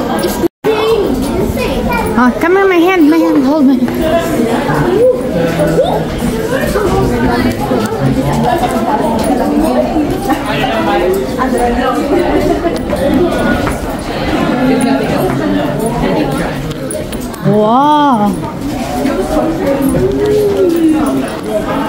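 A crowd of people chatter and talk nearby, echoing in a large stone space.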